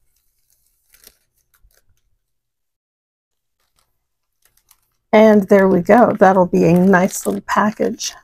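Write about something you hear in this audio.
A plastic sleeve crinkles softly as hands handle it.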